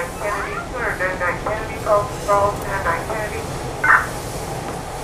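A young child talks excitedly nearby.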